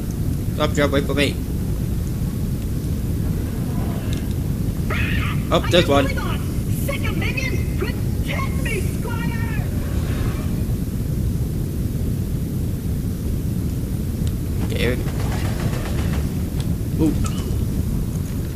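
A young man talks casually into a close microphone, in short bursts.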